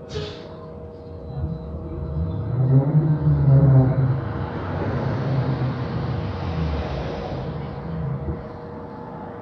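A bus engine rumbles louder as the bus pulls away and then eases off.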